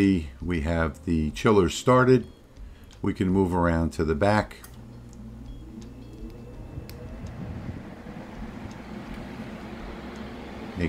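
Cooling fans whir steadily close by.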